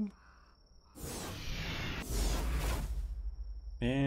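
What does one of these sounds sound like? A magical blast bursts with a loud whoosh.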